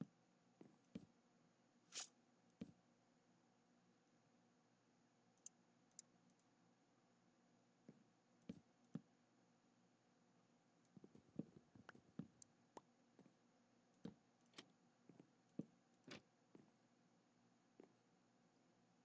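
Wooden blocks are set down with soft knocks.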